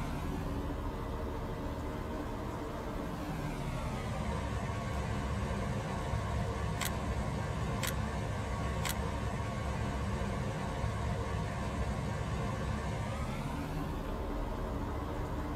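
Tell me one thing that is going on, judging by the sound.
A vehicle engine drones steadily, rising and falling in pitch.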